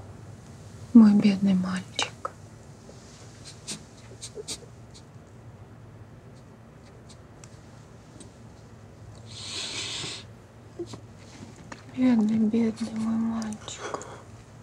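A man speaks softly and with emotion, close by.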